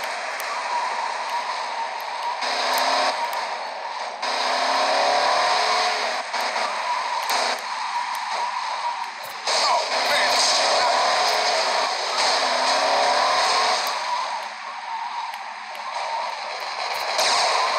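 A car engine revs and roars as a car speeds along.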